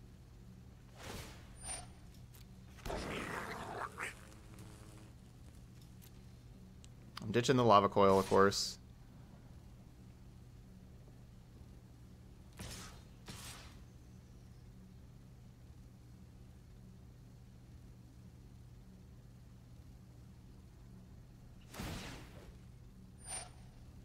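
Short electronic whooshes and chimes sound.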